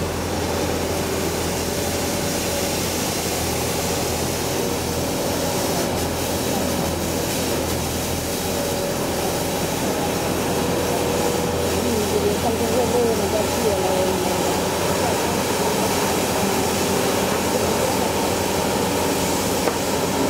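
Rotating brushes of a street sweeper scrub the pavement with a whooshing hiss.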